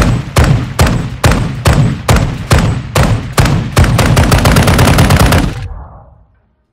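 Gunshots fire in quick bursts, then in rapid automatic fire, and cut off abruptly.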